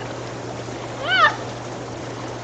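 A young woman shrieks with laughter.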